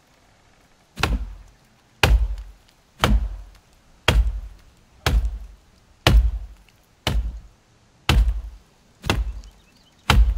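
An axe chops into a tree trunk with regular, heavy thuds.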